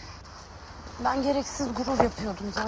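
A second young woman answers calmly, close by.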